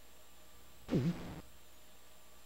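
A short electronic game sound effect plays.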